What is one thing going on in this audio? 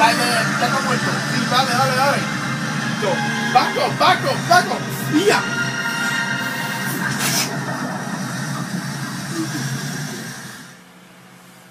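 A young man shouts and yells excitedly close by.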